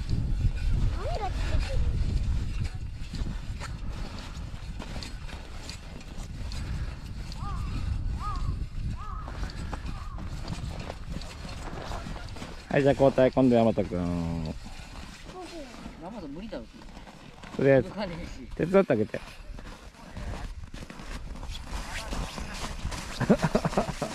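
Young children talk and call out nearby outdoors.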